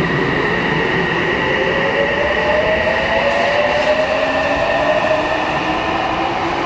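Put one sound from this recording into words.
A train's motors whine with a slowly rising pitch.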